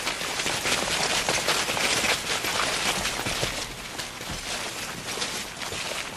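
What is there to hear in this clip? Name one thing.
Several people run with quick footsteps on stone.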